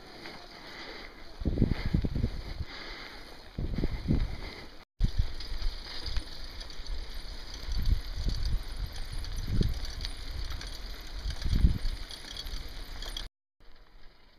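Bicycle tyres rumble and crunch over a bumpy dirt path.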